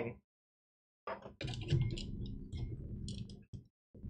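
A metal computer case is handled with soft bumps and rattles.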